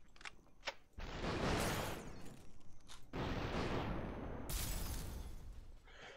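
Glassy shards shatter and scatter.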